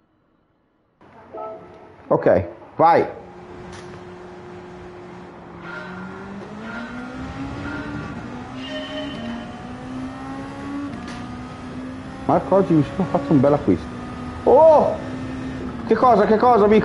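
A race car engine hums and rises in pitch as it speeds up.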